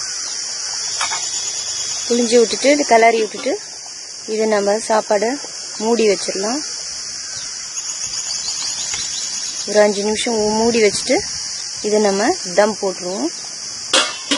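A pot of food bubbles as it boils.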